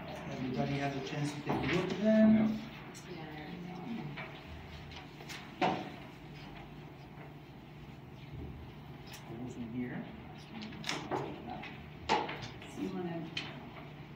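Paper rustles on a table.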